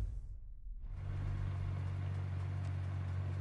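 A sports car engine idles with a deep, steady rumble.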